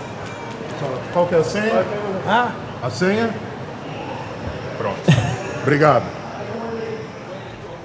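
Two men greet each other loudly and laugh.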